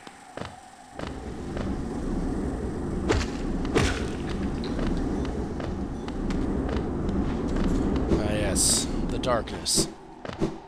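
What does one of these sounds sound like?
A low rumbling whoosh swells and then dies away.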